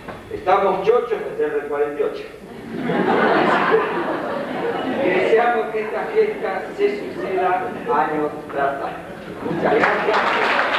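A middle-aged man speaks into a microphone in a calm, formal way, heard through a loudspeaker in an echoing hall.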